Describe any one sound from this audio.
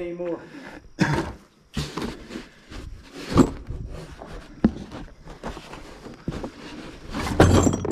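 Cardboard rustles and scrapes close by.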